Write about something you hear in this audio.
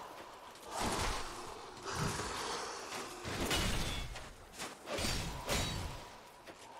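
Heavy weapons clash and thud in quick blows.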